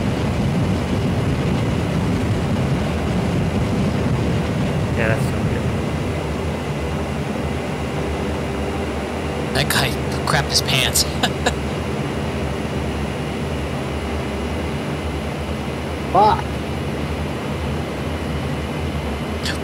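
An aircraft engine drones steadily and loudly.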